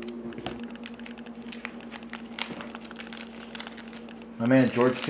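Plastic card sleeves click and rustle as they are handled.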